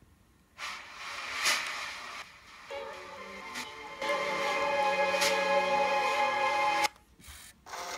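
Music plays from a car CD player.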